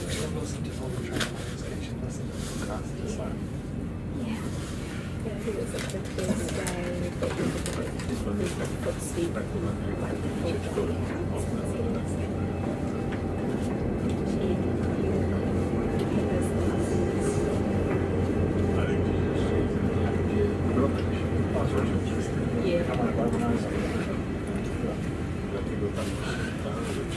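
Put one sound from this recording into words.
A passing train roars by close outside.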